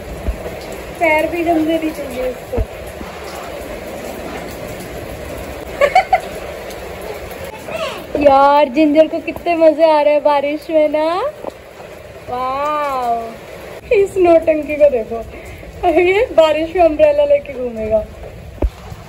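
A young child calls out loudly nearby.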